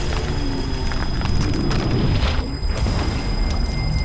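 A body thumps down onto a mat.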